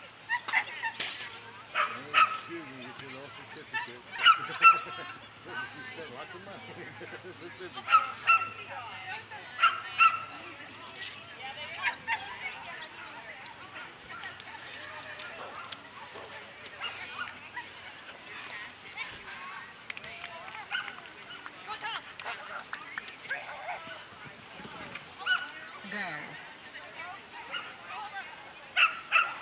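A woman shouts short commands to a dog outdoors.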